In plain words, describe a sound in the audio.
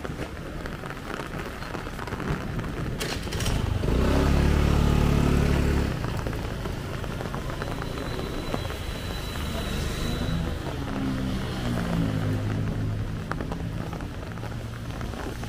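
Motorbike engines idle and pass on a wet street.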